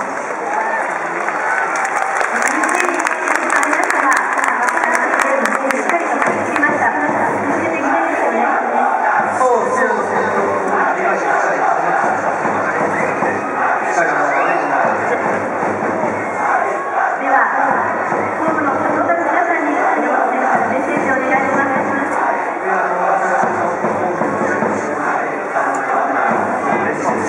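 A crowd cheers and claps.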